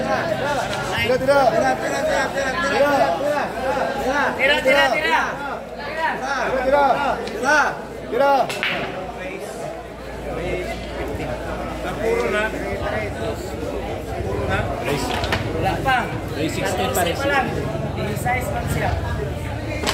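A crowd of men chatter and call out nearby.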